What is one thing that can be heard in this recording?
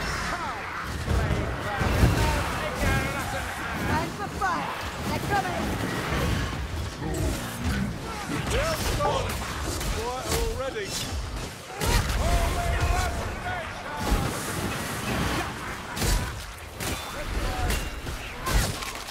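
Monsters snarl and screech close by.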